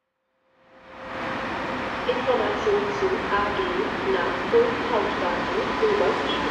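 A diesel locomotive hums as it approaches from a distance.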